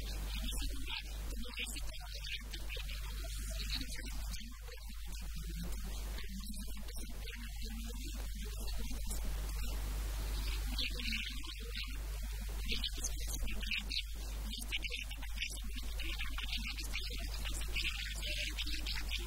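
A middle-aged woman speaks with animation into a handheld microphone.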